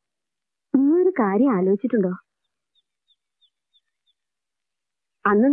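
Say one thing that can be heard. A woman speaks close by in an upset voice.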